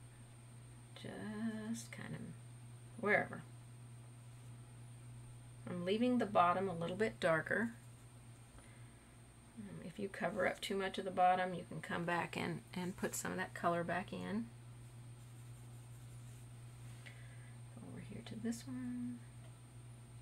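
A woman talks calmly into a close microphone.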